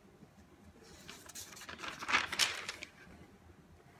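Paper pages rustle as they turn.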